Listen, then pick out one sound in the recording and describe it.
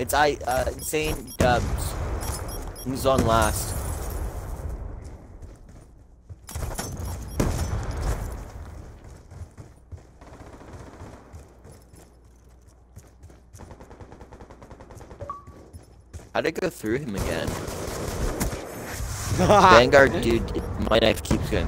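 Gunshots crack in quick bursts.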